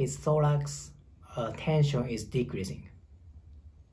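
A man speaks calmly and close by.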